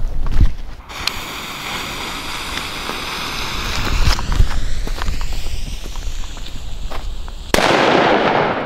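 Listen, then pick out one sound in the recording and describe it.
A firework fuse hisses and sputters steadily.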